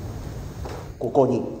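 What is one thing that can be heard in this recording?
A middle-aged man reads out a speech formally.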